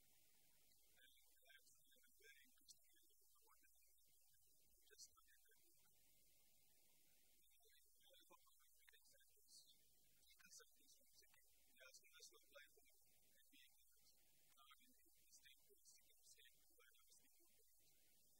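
A man lectures calmly, heard from across the room.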